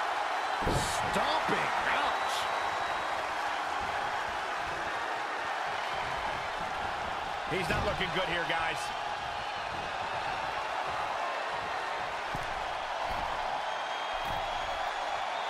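Heavy thuds land on a wrestling ring's mat.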